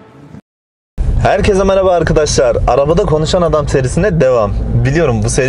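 A man speaks with animation, close by inside a car.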